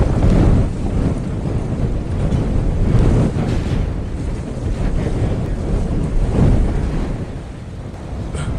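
Strong wind roars and howls outdoors.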